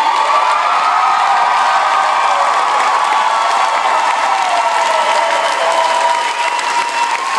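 A large crowd chants and shouts loudly in an echoing hall.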